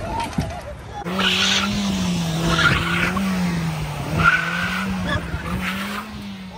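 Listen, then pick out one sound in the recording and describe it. Car tyres screech on pavement.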